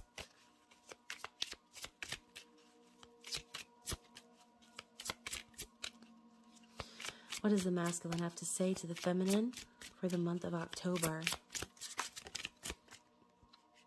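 Playing cards riffle and snap as they are shuffled by hand.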